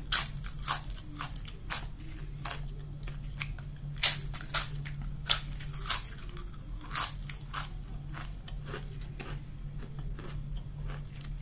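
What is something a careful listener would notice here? A woman chews soft food with wet mouth sounds.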